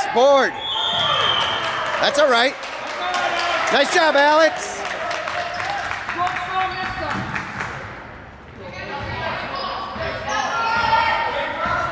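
A crowd cheers and calls out in an echoing gym.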